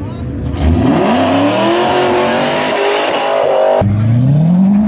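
Tyres screech on the road surface.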